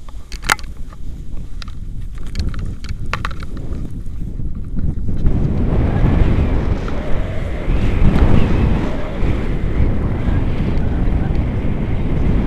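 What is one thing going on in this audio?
Wind buffets the microphone, growing into a strong rushing roar.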